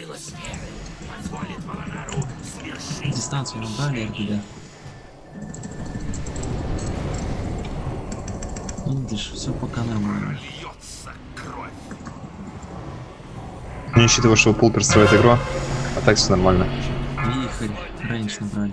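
Magic spells crackle and burst in a busy game battle.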